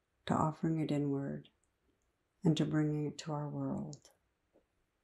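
A middle-aged woman speaks calmly and close to a microphone, as if on an online call.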